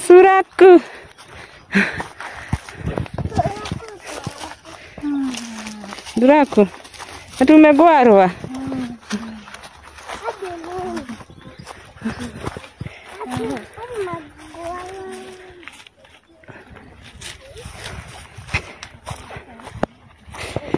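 Footsteps swish through tall dry grass.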